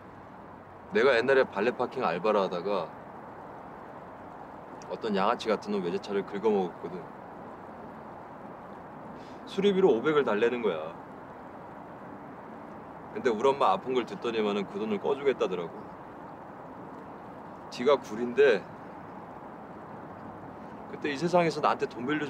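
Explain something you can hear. Young men talk quietly, close by, in short exchanges.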